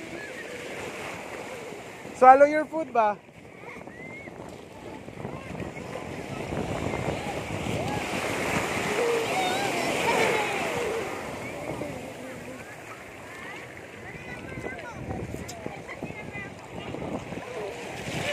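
Shallow waves wash and foam close by.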